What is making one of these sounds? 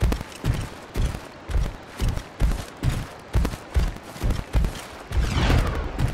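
A large creature's heavy footsteps thud at a steady pace.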